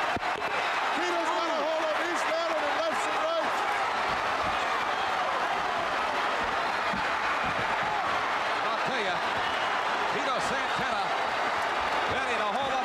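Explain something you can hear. A large crowd cheers and shouts loudly in a big echoing arena.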